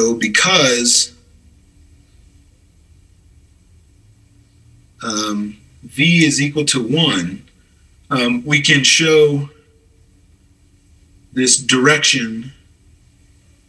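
A man speaks calmly into a microphone, explaining, in short bursts with pauses.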